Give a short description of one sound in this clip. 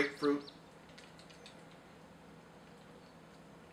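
A man sips a drink.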